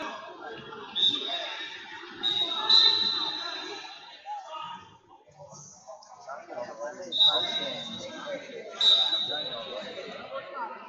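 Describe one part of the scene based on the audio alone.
A referee blows short, sharp whistle blasts.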